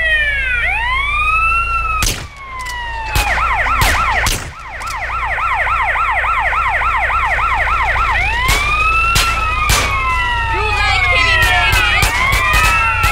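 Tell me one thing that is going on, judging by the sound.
Police sirens wail and whoop loudly throughout.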